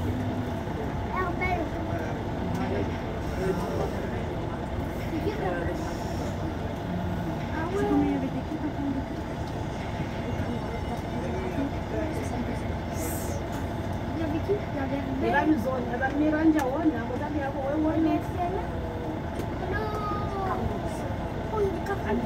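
A bus engine idles nearby with a low, steady rumble.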